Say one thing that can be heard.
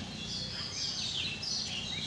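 A calf tears and chews grass close by.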